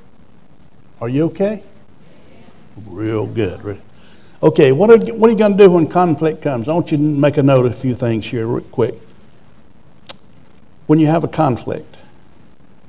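A middle-aged man speaks with emphasis into a microphone, with pauses.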